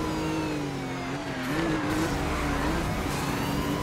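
Tyres screech as a car drifts around a bend.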